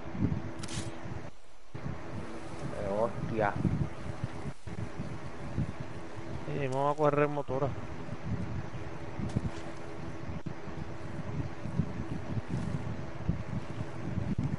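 Footsteps rustle through tall grass and undergrowth.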